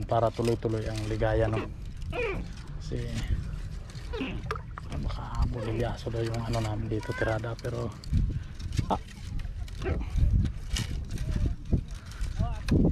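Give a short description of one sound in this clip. A fishing net rustles as it is handled.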